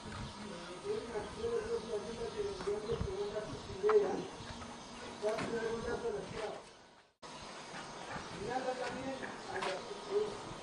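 A second elderly woman answers in conversation.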